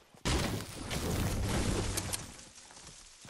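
A pickaxe chops rapidly into a tree trunk.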